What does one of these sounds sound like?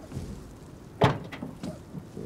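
A car door clunks open.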